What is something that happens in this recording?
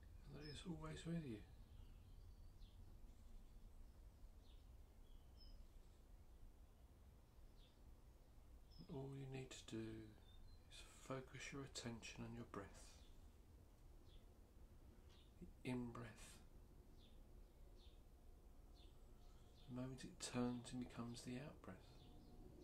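A man speaks calmly and slowly, close by, with long pauses.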